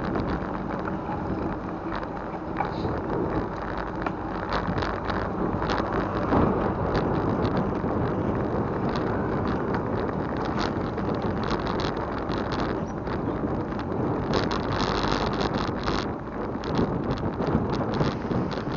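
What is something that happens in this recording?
Wind rushes past outdoors, buffeting loudly.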